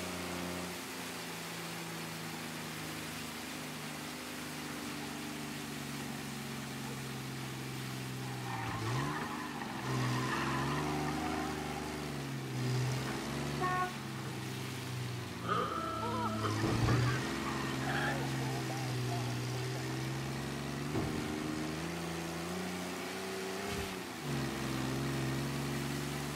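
Rain hisses on wet pavement.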